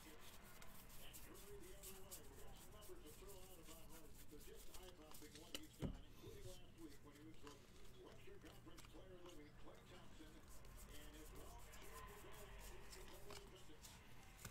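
Trading cards rustle and slide as they are shuffled by hand.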